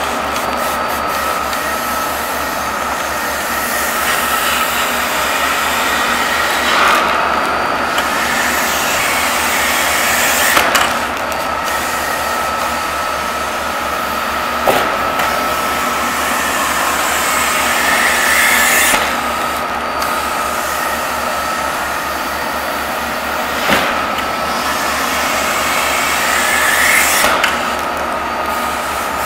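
A vacuum lifter hisses and whooshes steadily with a loud rush of air.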